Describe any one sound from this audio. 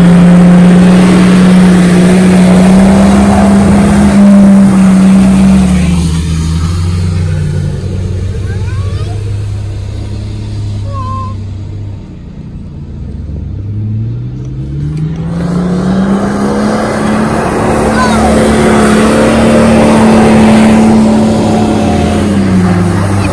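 A vehicle engine revs hard and roars, fading and returning.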